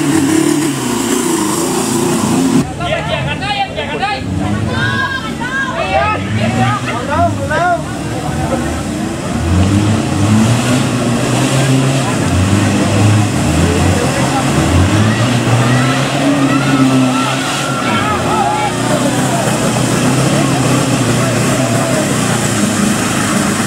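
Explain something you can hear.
An off-road truck engine roars and revs hard in mud.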